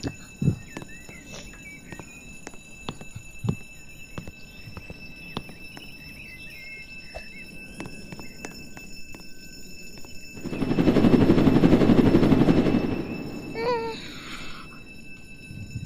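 A young boy talks into a headset microphone.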